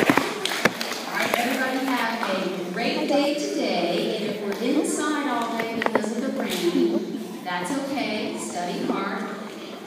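A woman speaks calmly through a microphone and loudspeaker in an echoing hall.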